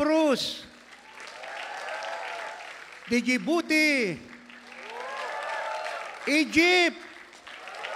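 An elderly man sings loudly into a microphone in a large echoing hall.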